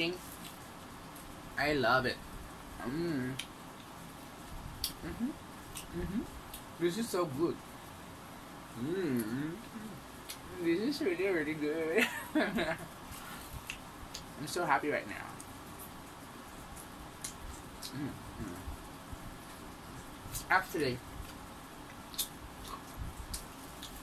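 A young woman chews and smacks her lips loudly.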